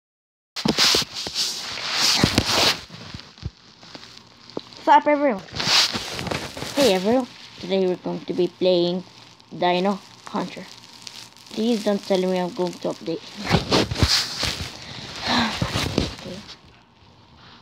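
A boy talks with animation close to a phone microphone.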